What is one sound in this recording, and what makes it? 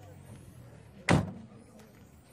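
A car door slams shut nearby.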